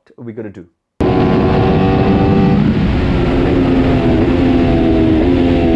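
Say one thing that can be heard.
A motorcycle engine roars loudly at high speed, shifting pitch.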